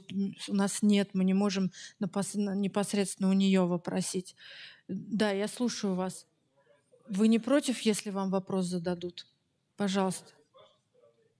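A woman speaks with animation into a microphone, heard over loudspeakers.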